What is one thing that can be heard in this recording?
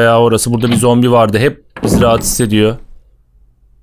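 A man talks close to a microphone.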